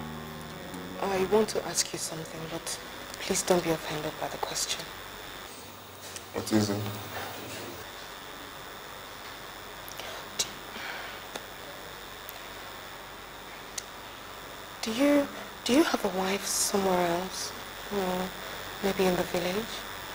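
A young woman speaks quietly and emotionally, close by.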